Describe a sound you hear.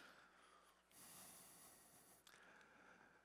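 Paper rustles as a page is turned.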